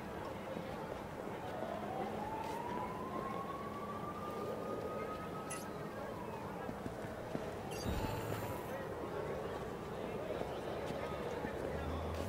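Footsteps walk and run on pavement.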